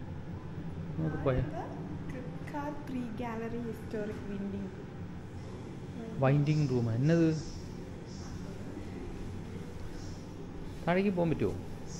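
A woman speaks nearby in short phrases.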